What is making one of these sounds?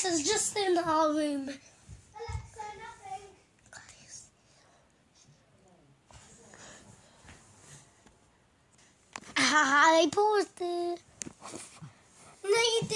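A young boy shouts and sings loudly close to the microphone.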